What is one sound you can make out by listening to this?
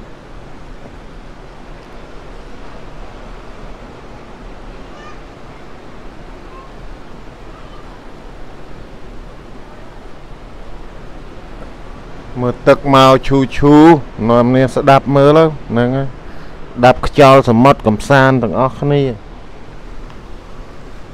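Waves wash softly onto a shore.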